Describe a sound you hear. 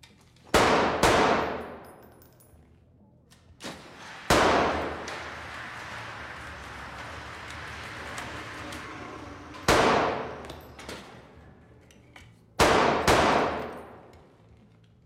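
Gunshots crack one after another and echo off hard walls indoors.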